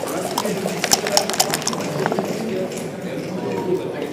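Dice rattle and clatter onto a wooden board.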